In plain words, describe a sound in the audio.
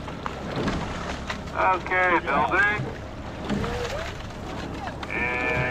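Oars splash and swish through the water.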